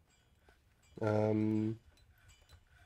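A man hums a long drawn-out note close to a microphone.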